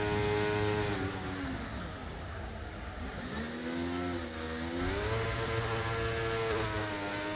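A racing car engine drops in pitch as the car slows, then revs up again.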